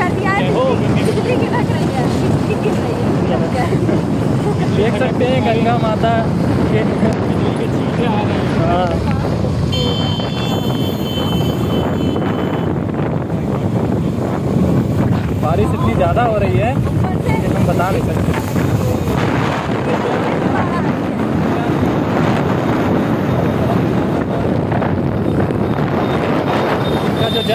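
Wind roars loudly past a moving vehicle.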